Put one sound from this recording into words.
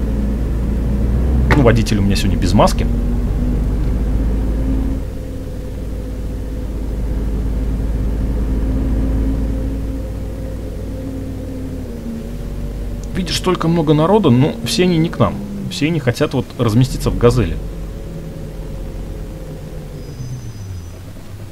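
A bus engine hums steadily as the bus drives along, then winds down.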